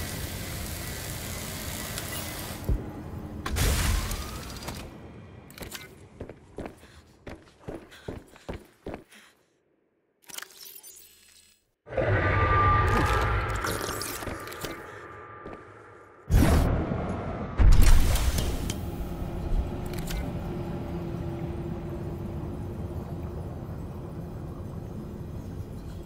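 Water rumbles and hisses in a deep, muffled underwater hush.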